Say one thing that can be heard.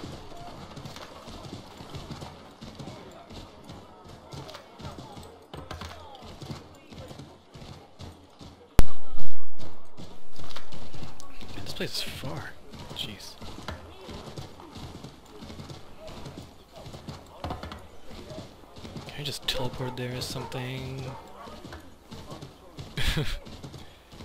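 Horse hooves clop steadily on a snowy street.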